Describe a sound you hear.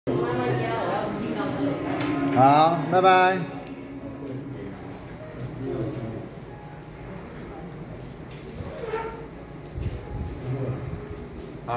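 A middle-aged man talks close by, loud and animated, then more quietly.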